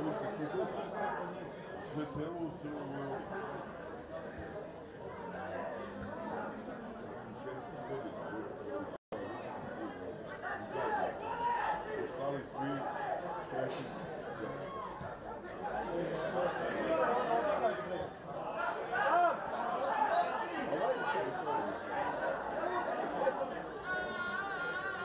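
A small crowd of spectators murmurs and calls out across an open stadium.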